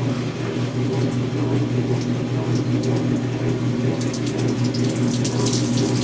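Wet cloth squeezes through a wringer's rollers.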